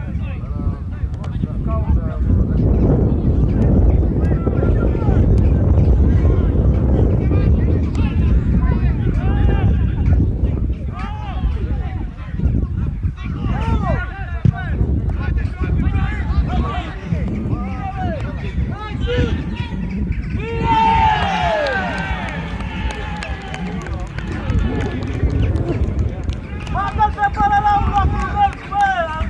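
Men shout across an open field at a distance.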